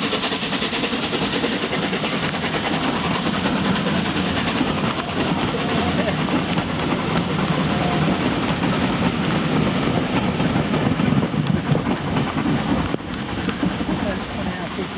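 Rain patters against a window.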